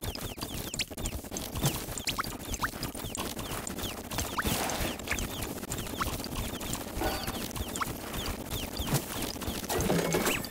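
Rapid game sound effects pop, zap and crackle without pause.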